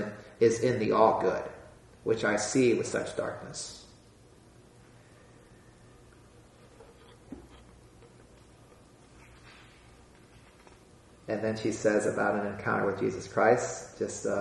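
A man speaks calmly and clearly into a close microphone, with long pauses.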